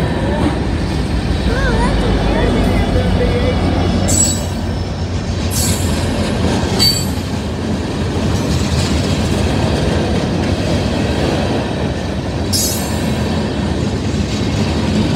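A freight train rumbles past close by with a steady roar.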